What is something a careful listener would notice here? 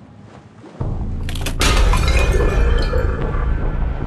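Glass cracks and shatters with a loud crash.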